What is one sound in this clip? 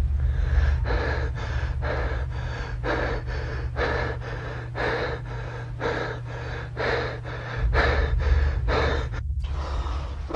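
A young man sings with feeling, close by.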